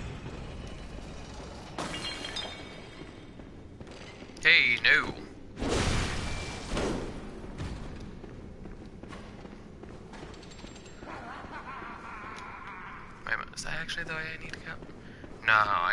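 Footsteps tap on a stone floor.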